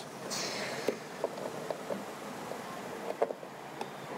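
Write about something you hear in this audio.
A fuel cap clicks and twists open.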